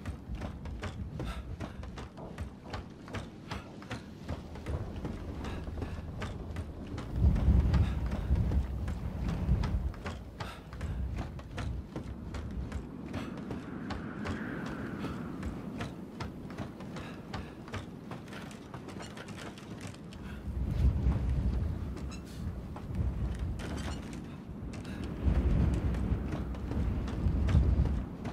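Footsteps thud steadily on creaking wooden planks.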